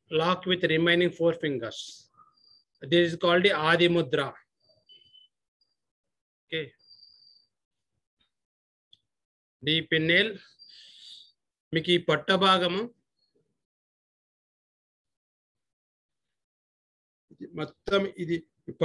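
An older man speaks calmly in short bursts, close by.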